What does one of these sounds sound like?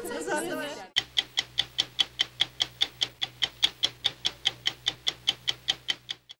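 A stopwatch ticks steadily.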